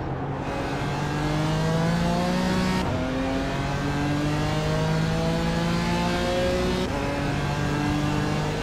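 A racing car engine revs up steadily, dropping in pitch with each gear shift.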